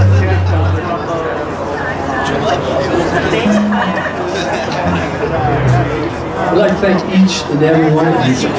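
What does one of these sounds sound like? A live band plays rock music loudly in an echoing hall.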